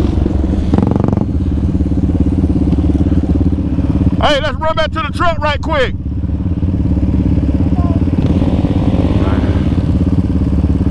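A quad bike engine drones steadily close by.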